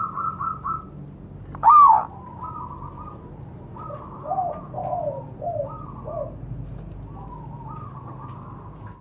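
A zebra dove coos in rapid trilling phrases.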